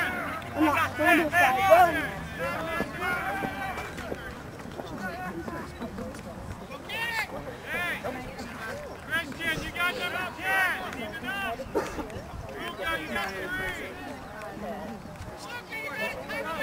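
A man close by talks and calls out excitedly.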